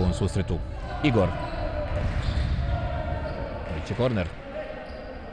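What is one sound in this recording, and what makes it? Sneakers squeak sharply on a hard court floor in a large echoing hall.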